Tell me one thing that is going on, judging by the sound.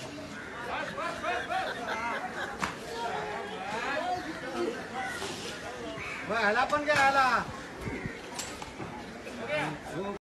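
Men talk and shout nearby outdoors.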